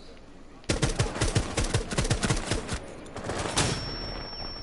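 A rifle fires in rapid bursts, close by.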